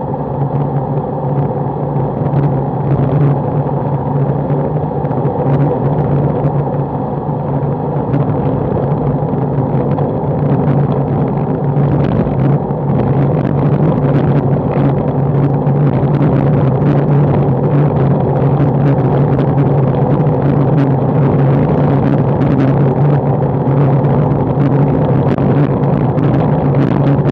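Wind rushes steadily past the microphone.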